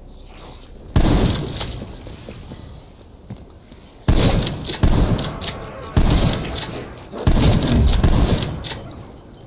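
Gunshots fire in loud bursts.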